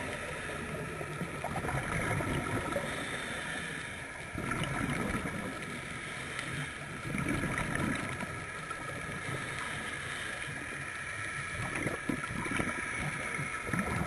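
Air bubbles from divers gurgle and rumble underwater in bursts.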